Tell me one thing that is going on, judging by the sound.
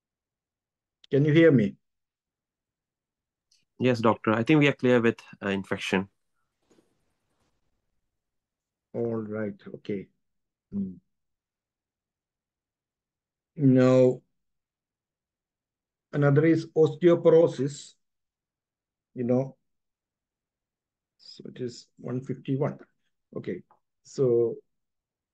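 A middle-aged man speaks calmly in short phrases, heard over an online call.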